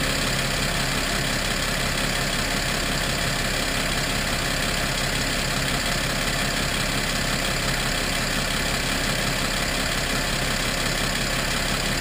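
An engine idles steadily up close.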